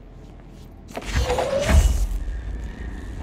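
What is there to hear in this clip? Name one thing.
A heavy object whooshes and rumbles as it is hurled through the air.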